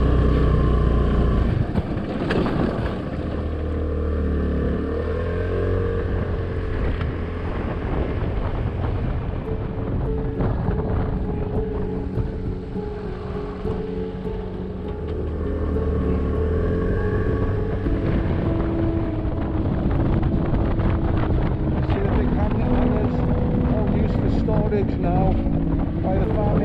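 A motorcycle engine hums steadily and rises and falls in pitch as the rider speeds up and slows down.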